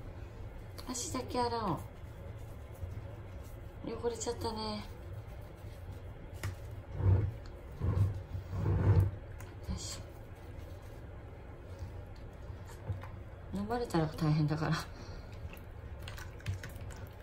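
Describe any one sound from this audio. Water splashes softly in a basin.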